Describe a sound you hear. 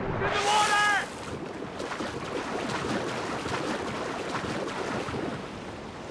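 A man splashes while swimming through water.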